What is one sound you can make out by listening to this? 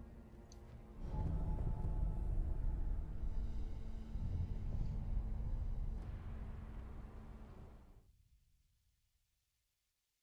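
A deep, rumbling whoosh swells and then slowly fades away.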